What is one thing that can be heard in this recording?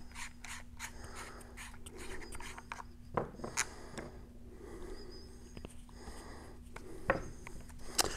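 Small plastic parts click and rattle as a man handles them.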